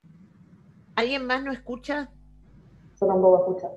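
An older woman speaks over an online call.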